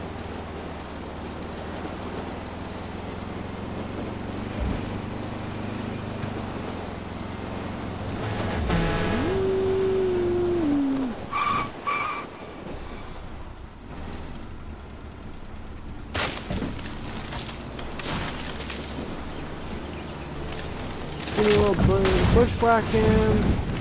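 An engine hums steadily as a vehicle drives along.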